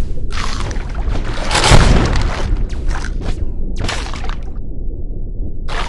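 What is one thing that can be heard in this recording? A shark's jaws chomp and crunch on prey.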